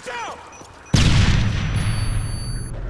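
A blast goes off with a loud bang and a long rumble.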